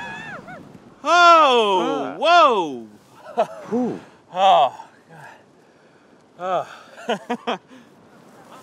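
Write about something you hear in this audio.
A young man speaks nearby, his voice rising and falling.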